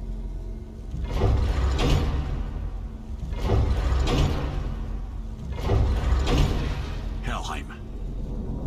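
A deep magical whoosh swells and fades each time the game's realm map shifts.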